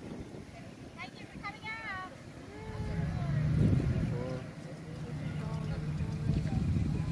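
Children call out to each other outdoors.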